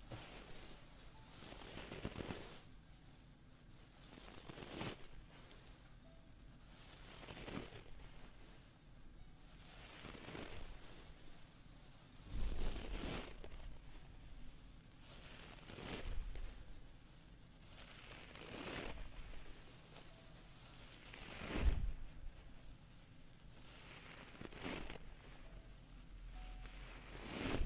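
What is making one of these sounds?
Hands brush and rub close to a microphone in soft, repeated swishes.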